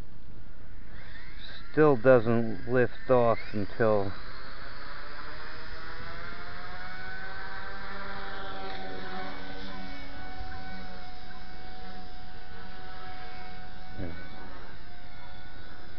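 A small drone's motors buzz, rising in pitch and then holding a steady whine.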